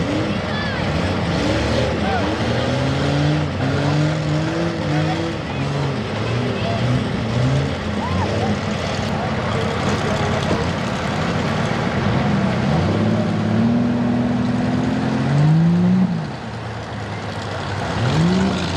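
A truck engine revs loudly, rising and falling in pitch.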